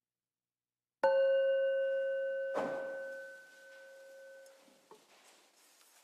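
A bell is struck once and rings out, slowly fading.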